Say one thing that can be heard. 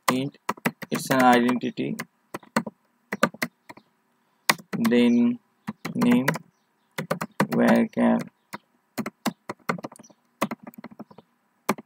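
Keys clatter quickly on a keyboard.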